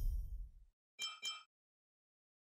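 Short electronic blips chime.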